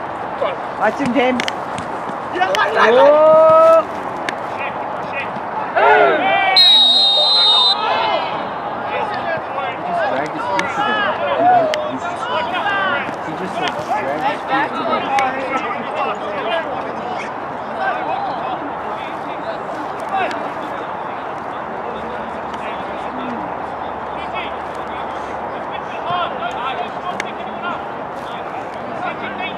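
Young men shout and call out across an open outdoor pitch.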